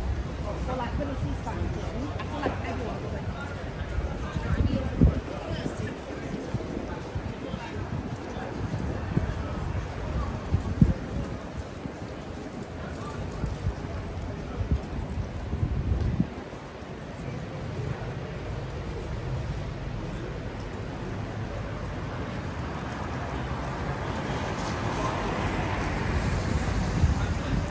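Footsteps tap on a wet pavement close by.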